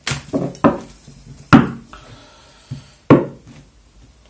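Cards slap and snap sharply as a deck is shuffled by hand.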